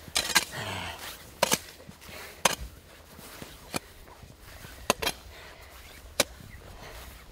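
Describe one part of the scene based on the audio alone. A tool chops hard at ice and snow in sharp blows.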